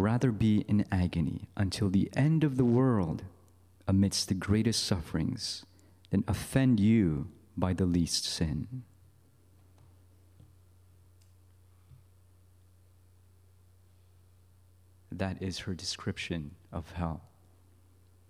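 A young man speaks calmly into a microphone, heard over a loudspeaker with pauses.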